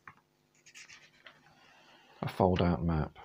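Paper rustles as a book's folded page is opened out.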